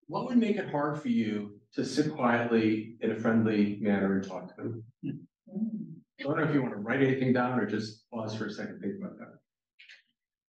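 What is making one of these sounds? A man lectures calmly, heard slightly distant in a room.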